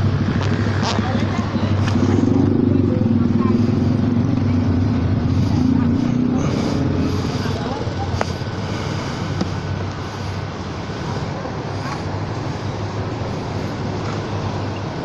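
A motorcycle engine idles steadily close by.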